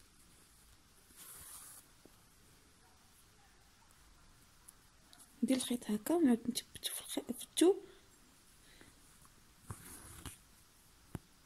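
Thread rustles softly as it is pulled through cloth.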